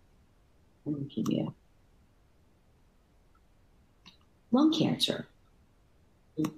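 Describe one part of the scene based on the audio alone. A middle-aged woman speaks calmly in short phrases over an online call.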